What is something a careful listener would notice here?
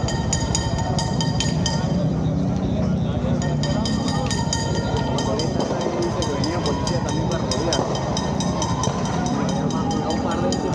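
A large crowd of men and women chatters and calls out outdoors.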